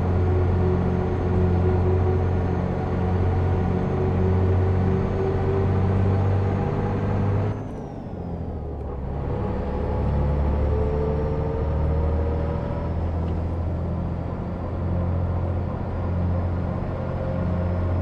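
A bus engine hums steadily, dropping briefly as the driver changes gear.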